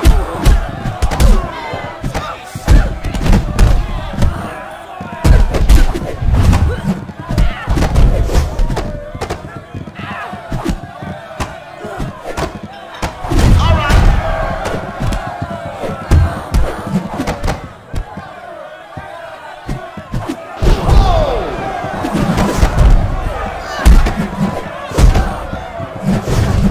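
A crowd cheers and shouts in a large room.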